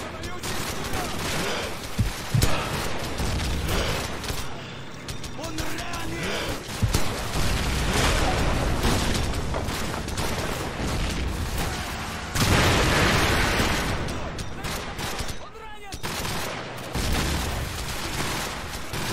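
Gunfire cracks and pops in the distance.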